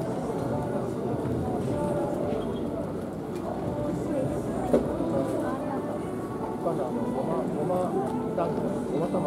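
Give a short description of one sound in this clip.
Men chat quietly in a large echoing hall.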